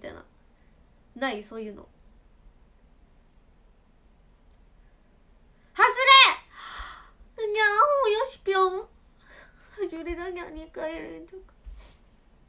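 A young woman speaks cheerfully and close by, in short bursts with pauses.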